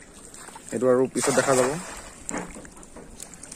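A fishing net splashes into water.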